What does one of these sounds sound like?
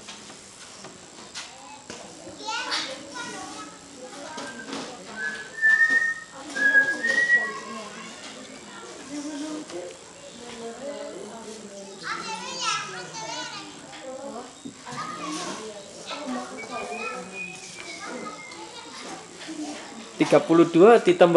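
Young boys talk and call out nearby.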